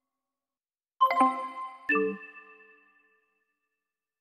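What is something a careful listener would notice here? A bright electronic chime rings as a message arrives.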